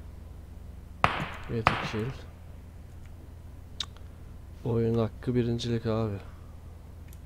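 A young man talks briefly and calmly, close to a microphone.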